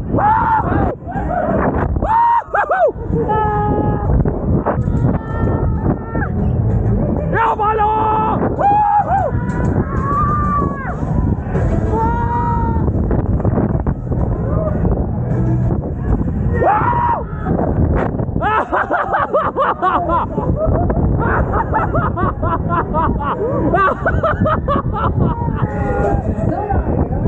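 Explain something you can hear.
Several people scream and laugh nearby.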